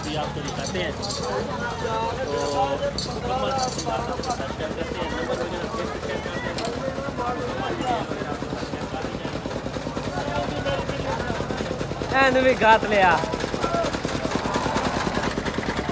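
Several men talk nearby in a busy crowd.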